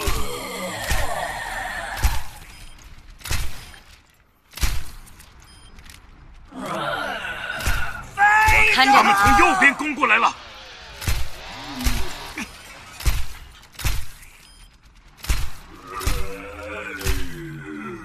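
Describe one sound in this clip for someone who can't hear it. A beam weapon hums and crackles.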